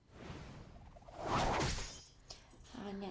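A weapon whooshes through the air.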